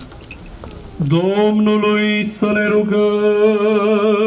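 A man chants loudly through a microphone and loudspeaker outdoors.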